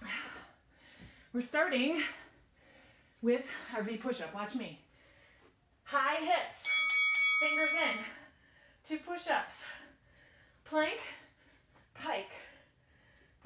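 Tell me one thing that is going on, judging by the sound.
A woman talks between breaths, close by.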